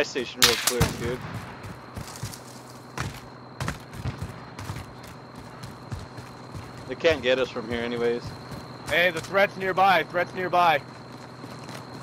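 Footsteps run over dirt and gravel.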